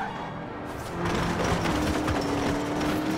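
A car scrapes and crashes against a roadside wall.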